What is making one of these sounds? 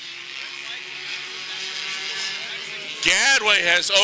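A race car engine drones steadily as cars speed around a track.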